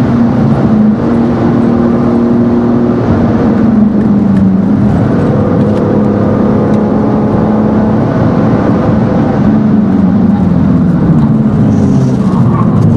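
A car engine roars loudly, its pitch rising and falling as it shifts gears.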